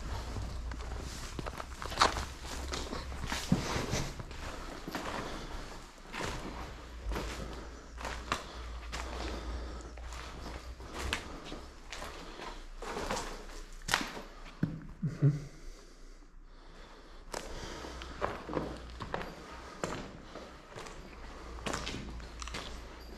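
Footsteps crunch and rustle over scattered paper and debris.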